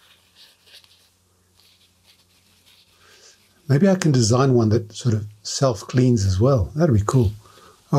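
A paper towel rustles and crinkles between fingers.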